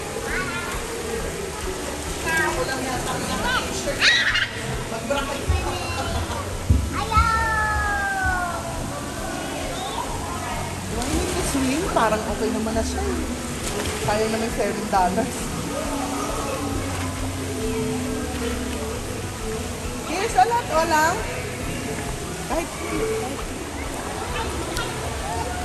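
A young girl chatters and squeals nearby in an echoing space.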